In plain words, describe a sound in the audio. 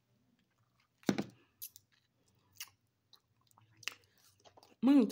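A young woman chews and crunches food close by.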